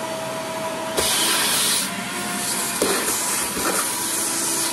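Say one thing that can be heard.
A vacuum nozzle knocks against the inside of a drawer.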